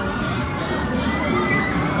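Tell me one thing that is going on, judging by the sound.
A roller coaster train rumbles along its track.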